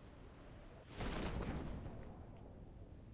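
A parachute opens with a sudden rushing whoosh.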